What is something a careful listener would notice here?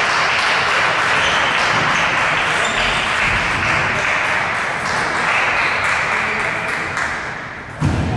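A table tennis ball clicks back and forth on paddles and the table in an echoing hall.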